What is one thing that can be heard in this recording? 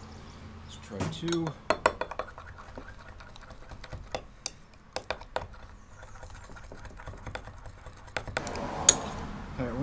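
A spoon clinks against a glass jug while stirring.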